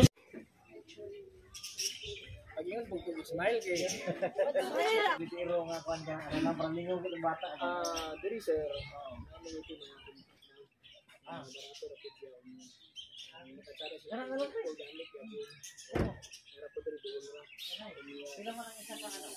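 Men and women chat casually nearby.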